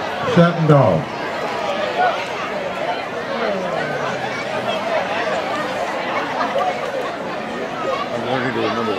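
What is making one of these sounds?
A crowd of people chatters and murmurs.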